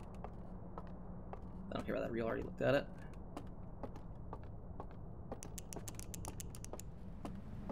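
Footsteps clatter up wooden stairs.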